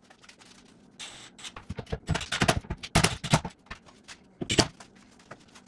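Metal parts knock and clatter.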